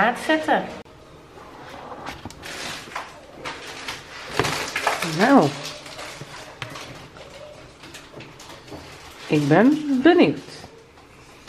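A box lid and plastic pieces rustle and click as they are handled.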